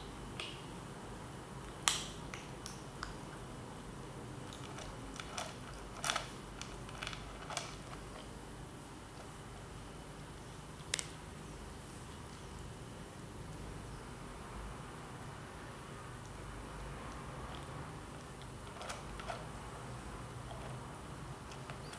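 Kittens eat from a plastic bowl with small clicks and crunches.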